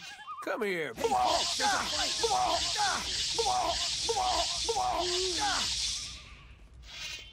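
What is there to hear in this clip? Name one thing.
A magic spell crackles and hisses loudly.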